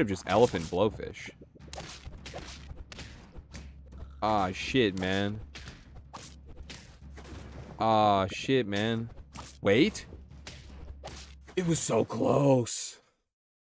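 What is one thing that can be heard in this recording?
Cartoon game creatures clash with short pops and thuds.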